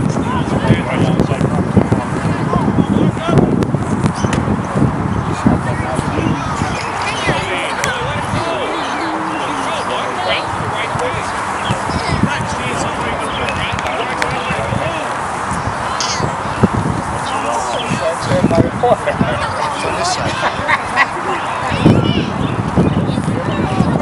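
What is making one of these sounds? Young players shout and call out across the field.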